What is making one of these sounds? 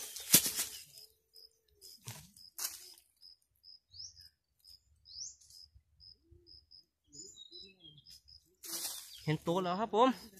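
A man scrapes at dry soil and leaves with his hands.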